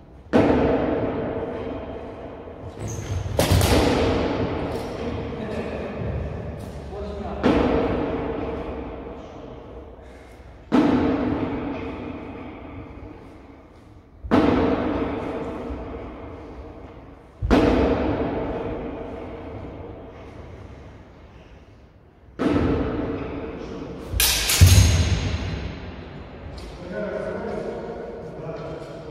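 Practice swords clash and strike with sharp blows that ring out through a large echoing hall.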